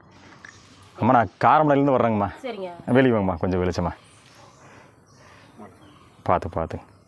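An elderly woman speaks calmly close by.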